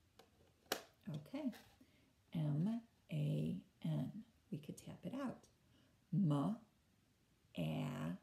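A woman speaks close by, slowly and clearly, as if teaching.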